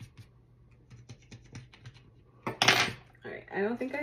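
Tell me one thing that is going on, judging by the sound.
A small metal tool clicks down onto a table.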